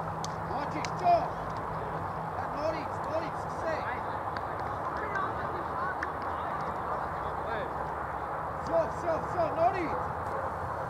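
Young men shout and cheer on an open field.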